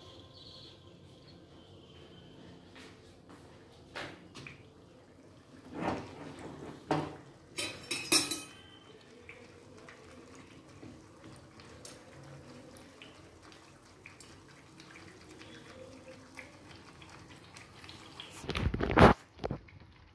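Batter sizzles softly in hot oil in a pan.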